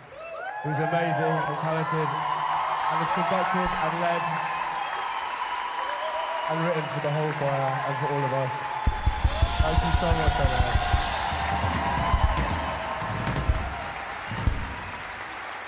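A choir claps in rhythm.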